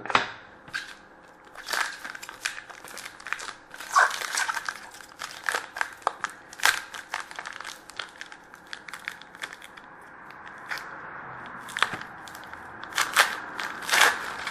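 Cardboard and plastic rustle under handling hands.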